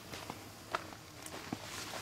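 Leafy plants rustle as someone brushes past.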